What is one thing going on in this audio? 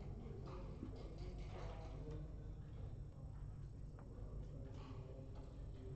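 Wooden checkers click as they are moved on a board.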